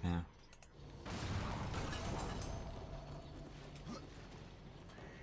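A rushing magical whoosh swells and slowly fades.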